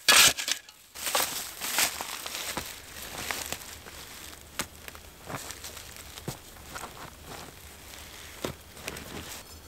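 Hands scrape and crumble loose soil.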